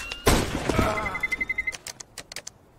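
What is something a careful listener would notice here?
An electronic bomb beeps in quick, even pulses.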